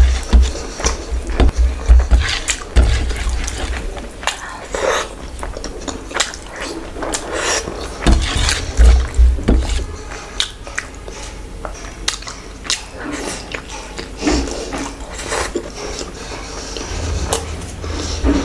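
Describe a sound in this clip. Fingers squish and mix food close to a microphone.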